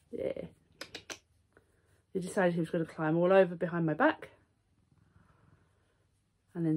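A young woman speaks softly and affectionately close by.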